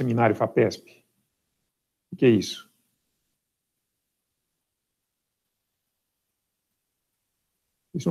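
A young man speaks calmly through an online call, in short bursts.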